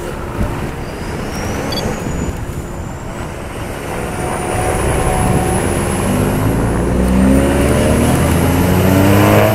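A siren wails nearby.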